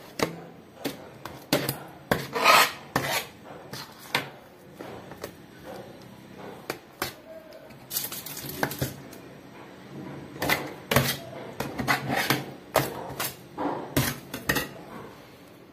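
Plastic rustles and a brush scrapes in quick bursts.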